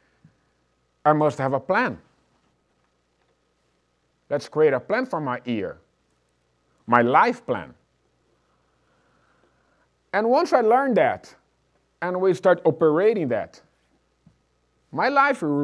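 A middle-aged man speaks calmly through a microphone, pausing between phrases.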